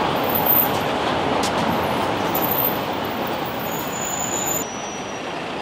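Footsteps tap on the pavement.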